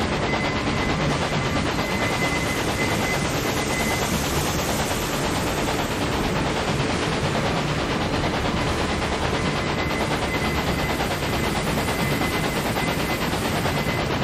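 Train wheels clatter rhythmically on the rails.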